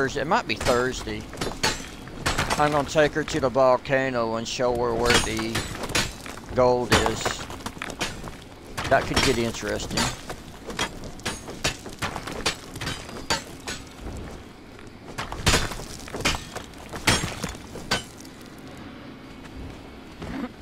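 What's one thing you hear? A pickaxe strikes rock in sharp, repeated knocks.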